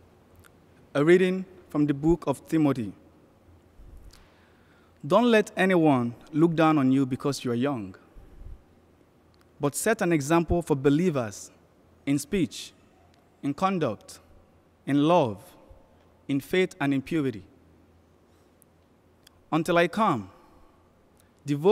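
A young man reads aloud calmly into a microphone in a large echoing hall.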